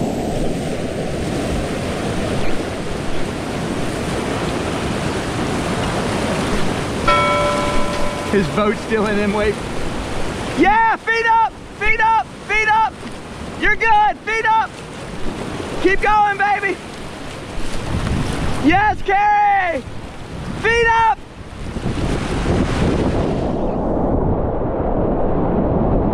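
Whitewater rushes and churns loudly close by.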